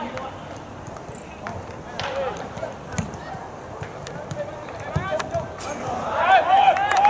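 Young men shout and call out to each other across an open field outdoors.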